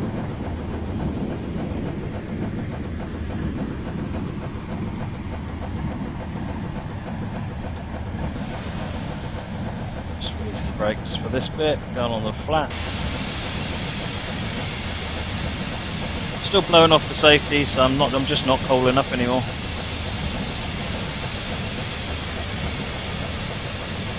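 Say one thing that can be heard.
A steam locomotive rumbles steadily along the rails.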